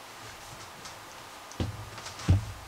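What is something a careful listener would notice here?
Hands bump against a plastic cooler with soft knocks.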